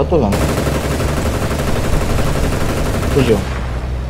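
A machine gun fires in bursts.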